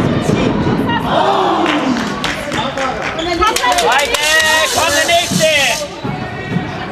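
Young women players call out in an echoing hall.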